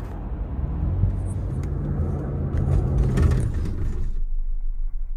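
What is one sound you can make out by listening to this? A car's engine and tyres rumble, heard from inside the car.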